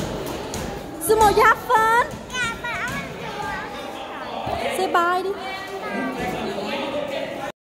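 A small child babbles and squeals.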